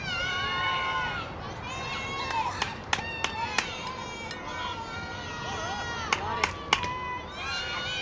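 Adults and children shout and cheer loudly outdoors.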